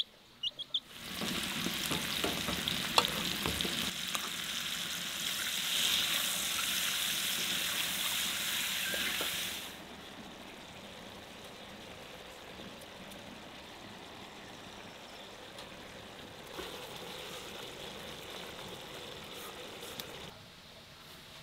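Mushrooms sizzle in a hot pan.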